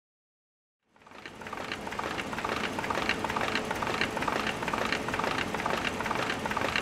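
A printing machine runs with a rapid, steady clatter.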